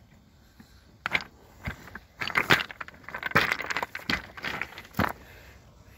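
A small model truck's plastic body scrapes and knocks against rocks as it tumbles.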